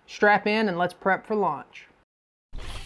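A man speaks calmly and close up into a microphone.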